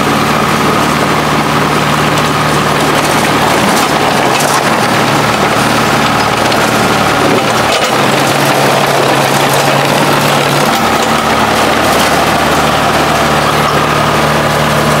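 A diesel engine of an old crawler excavator rumbles loudly and unevenly.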